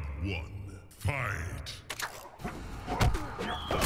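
Punches and kicks land with heavy thuds in a game fight.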